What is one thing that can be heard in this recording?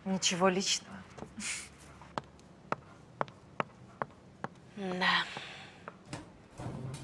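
Footsteps click on a hard floor.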